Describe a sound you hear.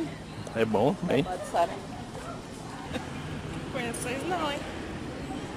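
A woman talks close by.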